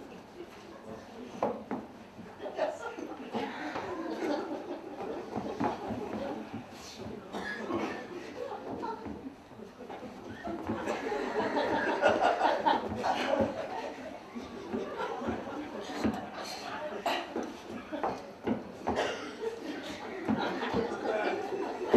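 Clothes rustle as a man struggles into a coat.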